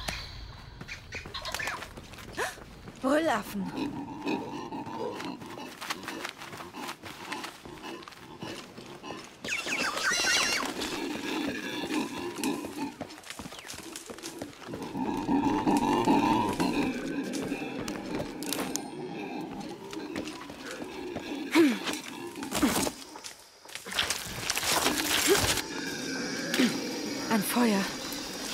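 Footsteps run over soft ground and leaves.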